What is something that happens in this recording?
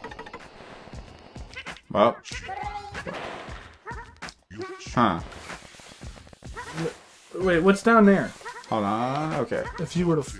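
A video game plays bouncy, cartoonish sound effects.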